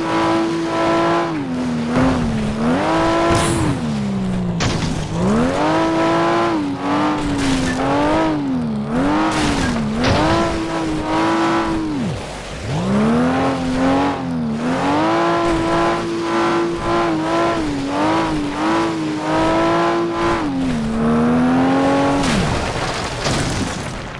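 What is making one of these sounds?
A car engine revs up and down loudly as gears shift.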